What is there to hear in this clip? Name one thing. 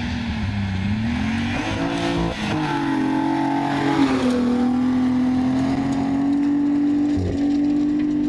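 A rally car engine roars and revs hard, shifting gears as it speeds past.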